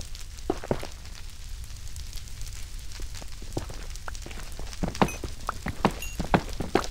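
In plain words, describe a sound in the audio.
Fire crackles and pops.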